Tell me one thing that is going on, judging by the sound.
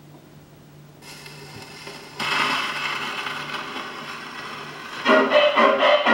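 A needle hisses and crackles on a spinning record.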